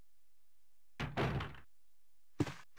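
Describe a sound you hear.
A heavy door thuds shut.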